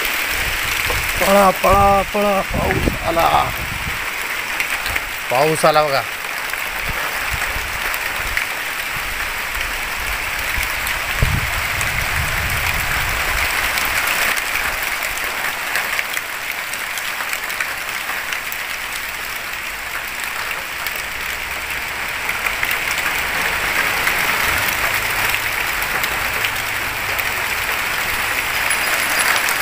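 Wind rustles through leaves.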